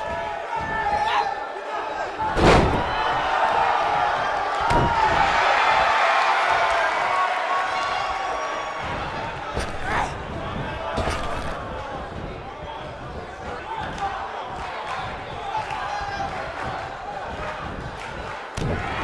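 A crowd cheers loudly in a large arena.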